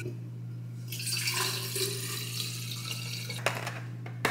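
Water pours into a cup.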